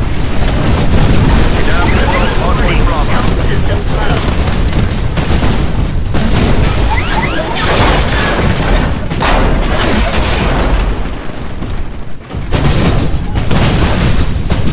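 Heavy gunfire rattles and booms.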